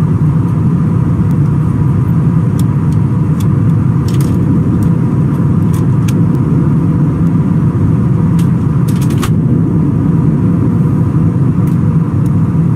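A jet engine roars steadily in flight.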